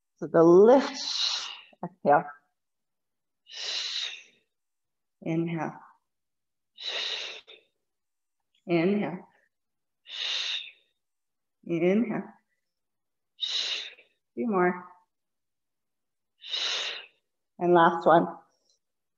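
A woman speaks calmly and briefly, close by, in short bursts.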